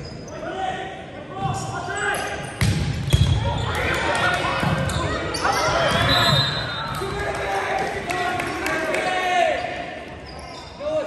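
Players and spectators shout and cheer in an echoing hall.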